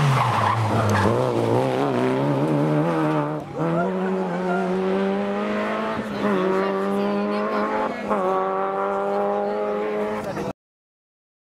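A rally car engine roars and revs hard, shifting gears as the car speeds past and away.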